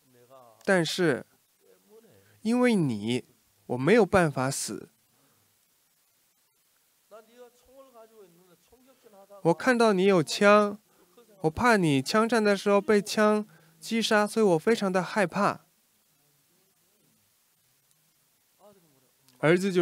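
An elderly man speaks slowly and deliberately into a microphone, in short phrases with pauses.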